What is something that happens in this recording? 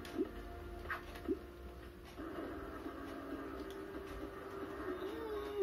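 Cheerful video game music plays through a television speaker.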